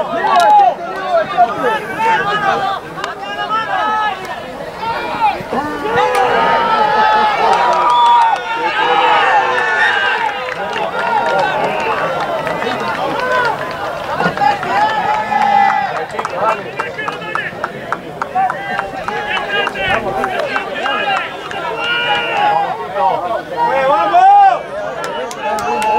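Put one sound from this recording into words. A crowd of spectators shouts and cheers from nearby.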